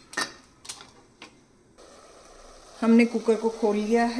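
A metal lid is lifted off a pot with a clink.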